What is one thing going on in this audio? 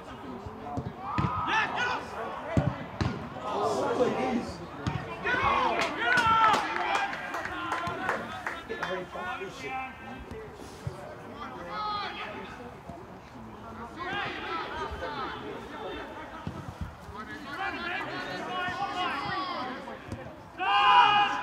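Men shout to each other across an open pitch.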